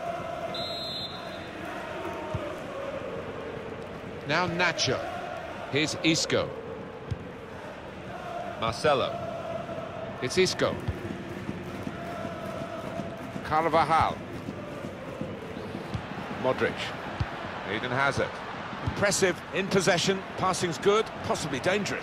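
A large crowd murmurs and chants steadily in a stadium.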